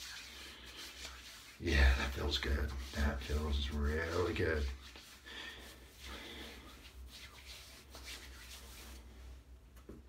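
Hands rub and swish close to a microphone.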